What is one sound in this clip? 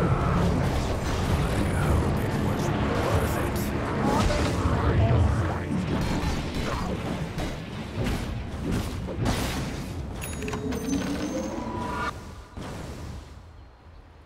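Video game battle effects clash and boom loudly.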